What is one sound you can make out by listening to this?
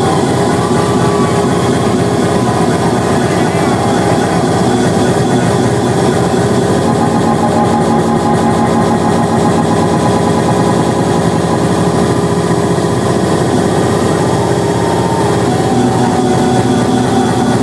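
Loud electronic dance music plays through loudspeakers.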